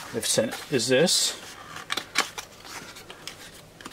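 A small cardboard box is opened with soft scraping.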